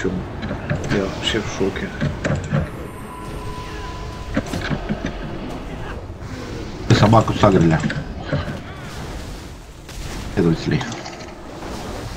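Fantasy combat sound effects clash and whoosh in a hectic battle.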